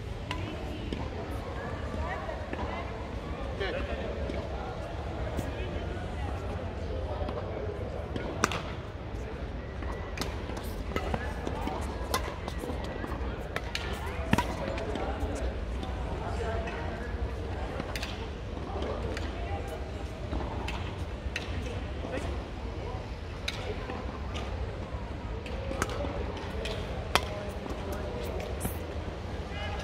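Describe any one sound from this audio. Badminton rackets hit a shuttlecock back and forth in a large echoing hall.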